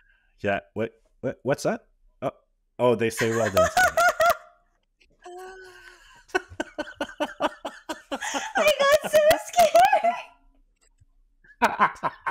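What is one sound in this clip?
A man laughs heartily over an online call.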